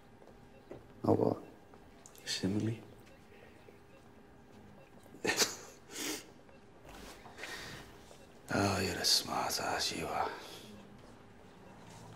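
A middle-aged man answers in a low, tired voice.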